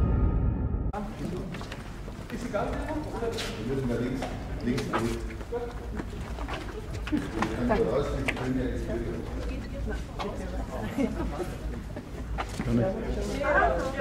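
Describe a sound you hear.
A group of women and men chat nearby outdoors.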